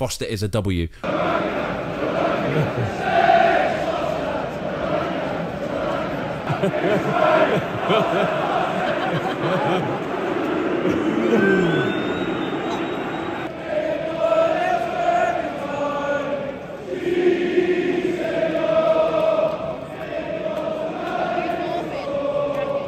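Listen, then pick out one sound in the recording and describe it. A stadium crowd sings and chants together.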